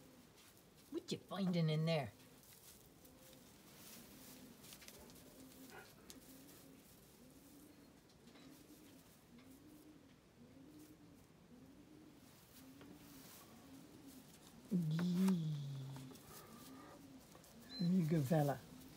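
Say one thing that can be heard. A puppy whines and yelps in short, high bursts.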